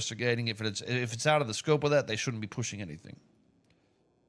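A man speaks calmly and close through a microphone.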